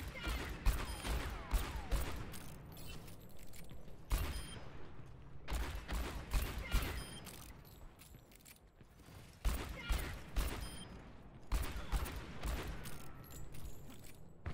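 Gunshots fire in sharp, quick bursts.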